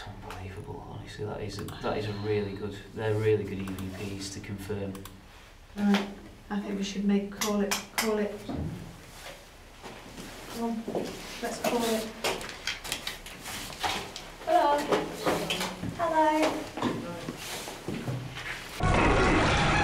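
A woman speaks in a hushed, tense voice close by.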